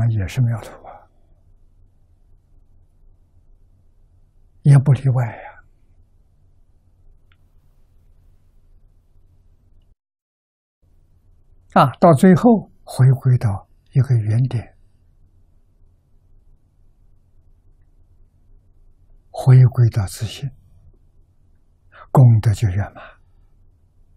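An elderly man speaks slowly and calmly into a close microphone, in short phrases with long pauses.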